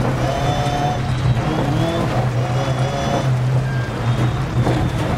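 A rally car engine roars steadily at high revs.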